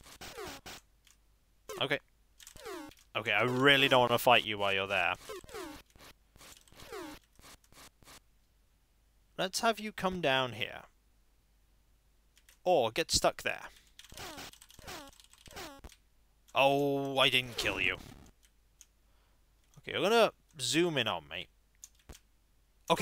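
Short electronic game bleeps sound.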